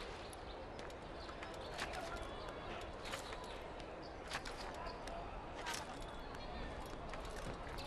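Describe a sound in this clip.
Hands grip and scrape on a stone wall during a climb.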